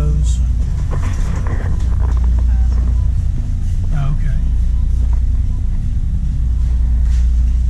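A shopping cart rolls and rattles over a hard floor.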